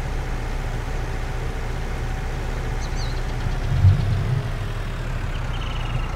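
A diesel tractor engine drones as the tractor drives.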